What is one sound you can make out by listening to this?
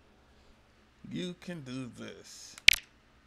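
A young man talks briefly and casually into a nearby microphone.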